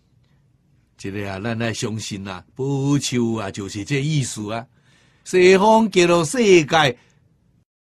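An elderly man speaks calmly and slowly into a close microphone.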